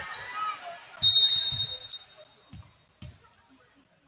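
A volleyball is struck with a hard slap.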